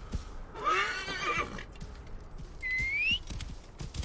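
Horse hooves clop over sandy ground.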